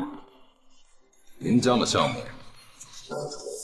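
A middle-aged man speaks with surprise, close by.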